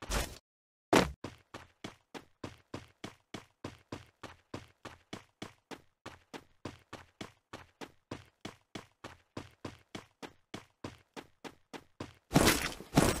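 Footsteps run on pavement.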